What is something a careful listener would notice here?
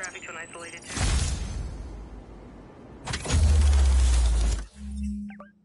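A deep whooshing rush swells and fades.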